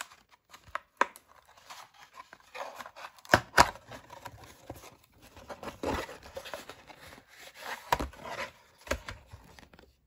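Plastic and cardboard tap and click together.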